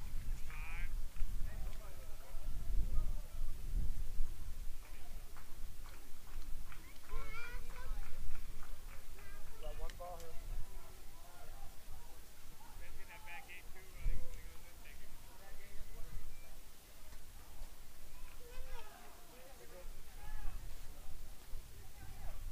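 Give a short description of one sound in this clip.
Young men call out and chatter at a distance across an open field.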